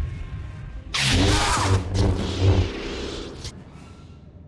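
A blaster fires a burst of shots.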